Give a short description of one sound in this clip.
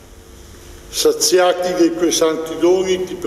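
A man sings a chant loudly through a microphone in an echoing hall.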